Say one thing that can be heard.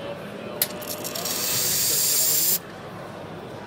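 A steam wand hisses loudly in a short burst.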